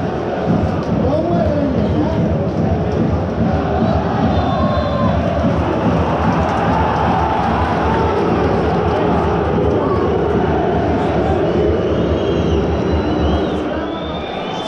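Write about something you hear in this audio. A large stadium crowd murmurs and chatters all around.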